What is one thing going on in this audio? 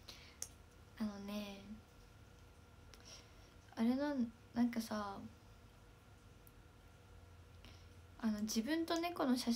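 A teenage girl speaks softly and brightly close to a microphone, in short bursts.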